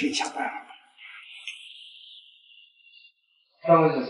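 A man slurps from a cup.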